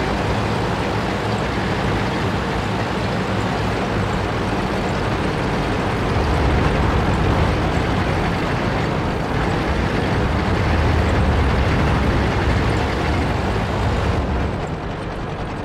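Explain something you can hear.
A heavy tank engine rumbles and clanks as the tank drives.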